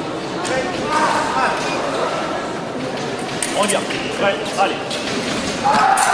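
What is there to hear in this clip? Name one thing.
Steel blades clash and scrape sharply.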